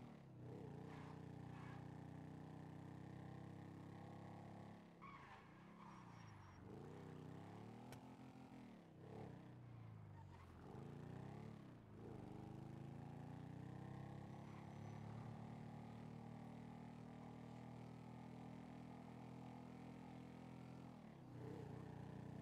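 A motorbike engine hums steadily and revs up and down.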